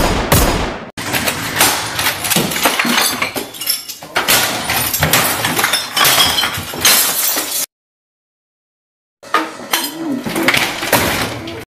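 Objects crash and bang as they are struck and thrown about.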